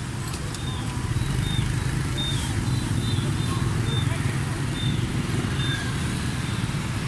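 Motorbike engines hum and rumble steadily as traffic passes close by.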